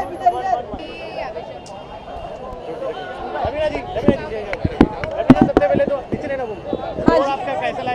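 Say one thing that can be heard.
A woman speaks cheerfully close by.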